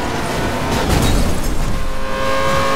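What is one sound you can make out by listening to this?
A car crashes into another car with a loud thud.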